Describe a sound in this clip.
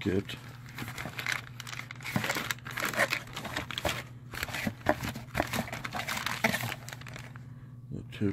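A plastic bag crinkles and rustles as it is handled close by.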